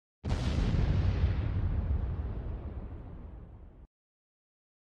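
An explosion booms and rumbles, slowly fading away.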